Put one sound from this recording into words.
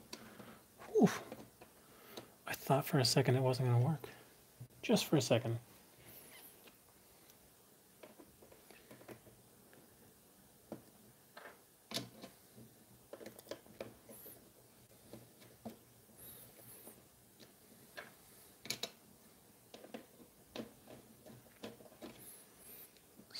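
A small screwdriver clicks and scrapes against metal.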